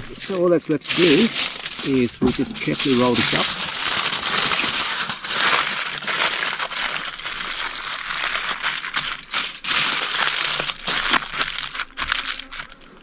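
Aluminium foil crinkles and rustles close by as it is folded.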